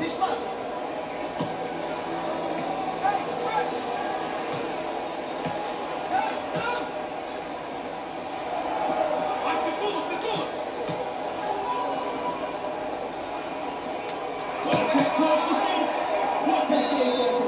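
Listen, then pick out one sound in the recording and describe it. Video game sounds of a street football match play steadily from a television speaker.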